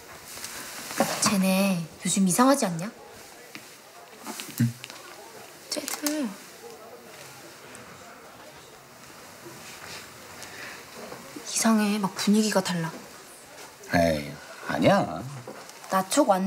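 A young woman speaks quietly up close.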